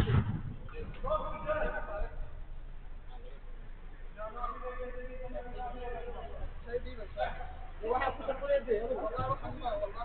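Men shout and call to each other outdoors.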